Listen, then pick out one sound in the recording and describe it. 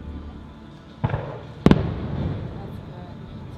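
Fireworks burst with loud booms that echo and rumble away.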